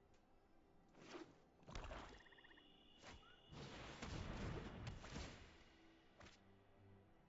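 Soft magical whooshes and chimes sound as cards are played.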